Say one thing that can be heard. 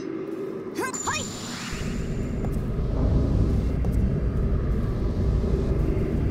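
A magic spell shimmers and hums.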